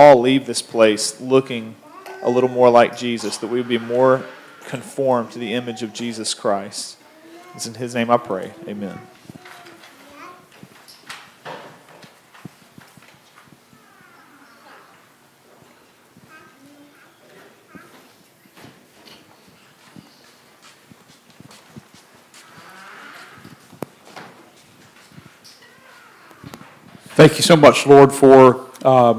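A man speaks calmly through a microphone in a large echoing room.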